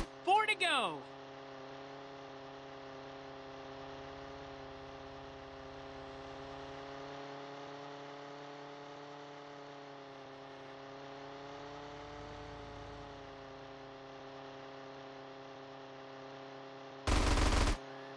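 A small model plane engine buzzes steadily.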